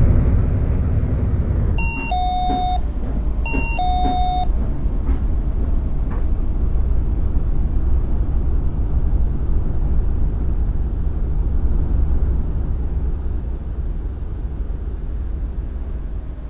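A bus engine rumbles low and steady as the bus drives along.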